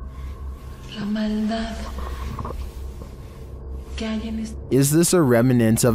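A young woman speaks loudly close by.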